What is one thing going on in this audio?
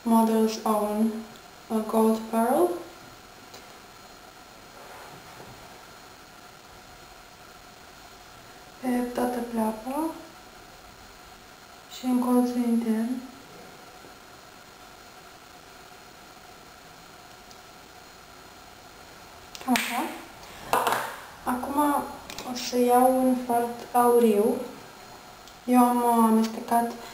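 A young woman speaks calmly and softly close to a microphone.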